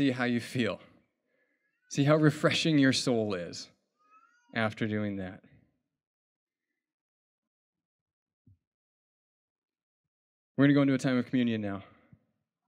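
A man speaks with animation into a microphone, close by.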